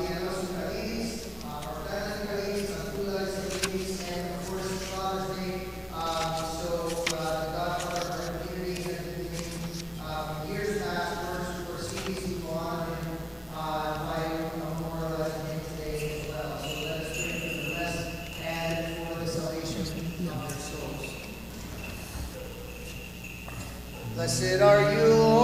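A man chants in a slow, steady melody in a large echoing hall.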